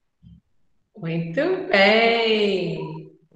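A woman speaks cheerfully and warmly over an online call.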